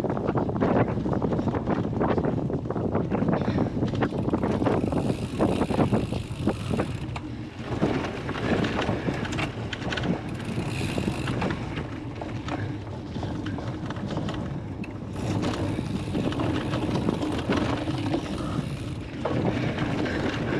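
Bicycle tyres rumble and bump over rough grass and mud.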